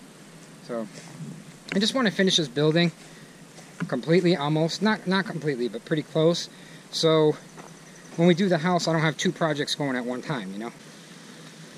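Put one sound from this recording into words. A man talks calmly close to a microphone.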